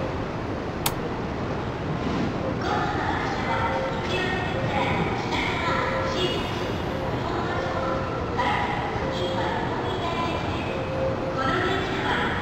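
A train's electric motors hum steadily while standing still.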